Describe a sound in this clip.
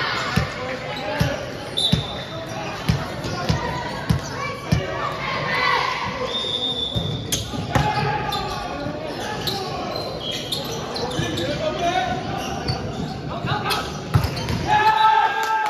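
A volleyball thumps as players hit it, echoing in a large hall.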